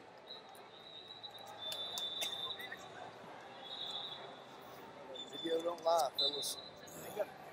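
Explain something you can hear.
Shoes squeak sharply on a mat.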